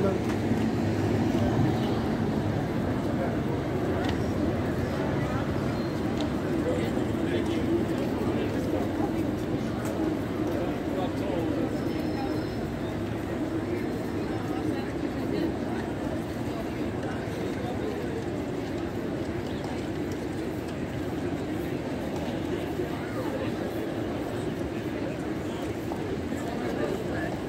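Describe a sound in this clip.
A crowd of people murmurs and chatters nearby.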